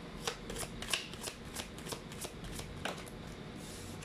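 Cards shuffle and riffle with quick soft flicks.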